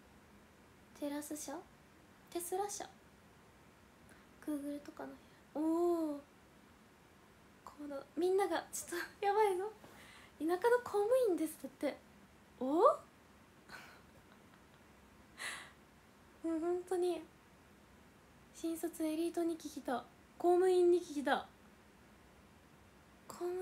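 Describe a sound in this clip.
A young woman talks close to a microphone in a bright, animated voice, with pauses.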